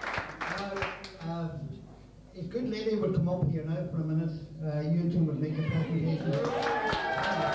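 A middle-aged man speaks into a microphone over a loudspeaker, with a slight echo.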